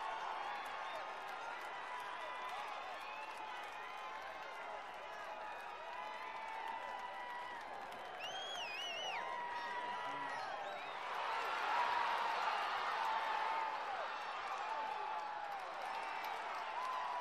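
Young players and spectators shout and call out across an open field.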